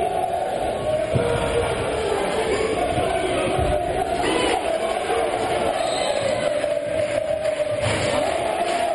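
A crowd cheers and chants steadily in a large echoing hall.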